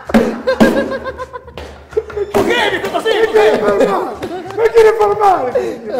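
A man laughs loudly and heartily close by.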